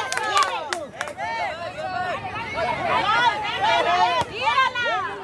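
A football is kicked on grass.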